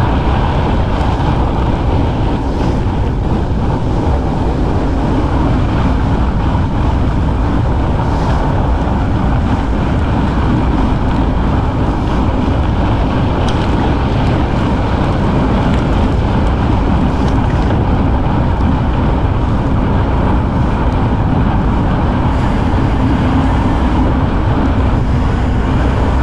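Bicycle tyres crunch over packed snow.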